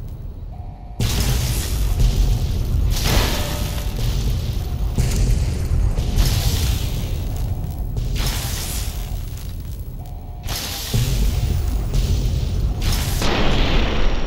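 Electricity crackles and buzzes loudly.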